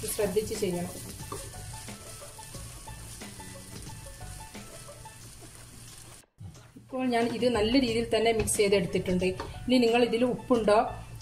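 A spatula scrapes and stirs rice in a pan.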